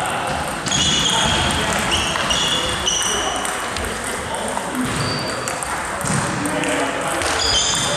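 A table tennis ball clicks back and forth on paddles and the table in a large echoing hall.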